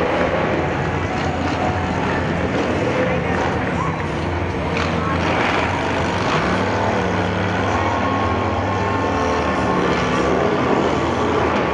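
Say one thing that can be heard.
Motorcycle engines rumble loudly as a parade of bikes rolls slowly past.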